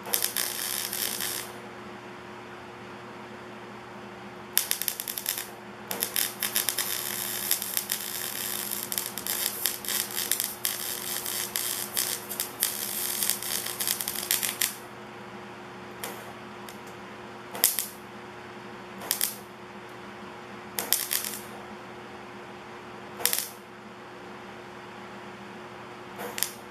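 A welding torch crackles and sizzles in bursts, then in short spurts.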